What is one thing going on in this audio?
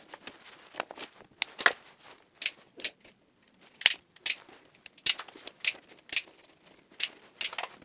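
Pliers snip and click on wires.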